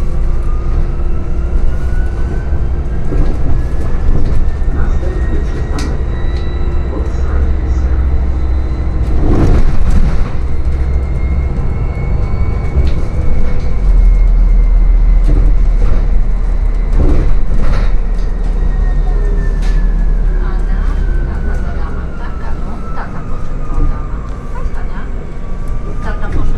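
The electric drive of a hybrid city bus whines, rising and falling in pitch.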